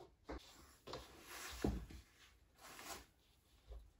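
Fabric rustles as clothes are gathered up from the floor.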